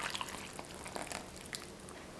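Liquid pours into a bowl of flour.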